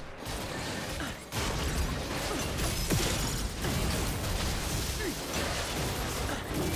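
Game sound effects of spells and attacks crackle and boom in quick bursts.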